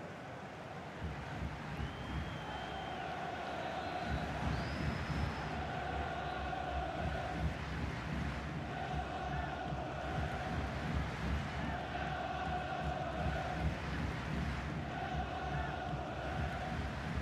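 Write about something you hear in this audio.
A large stadium crowd roars and chants steadily in the distance.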